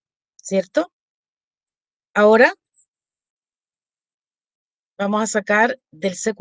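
A woman speaks calmly through an online call, in short bursts.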